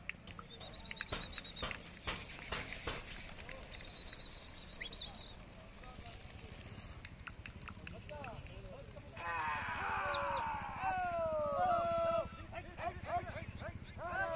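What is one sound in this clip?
Pigeons flap their wings as they take off.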